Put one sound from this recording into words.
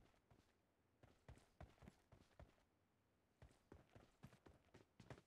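Footsteps patter.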